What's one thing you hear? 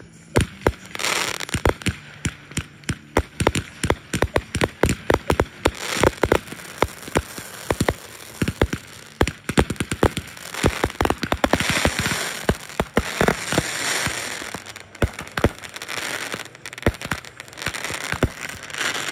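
Fireworks fountains hiss and fizz steadily.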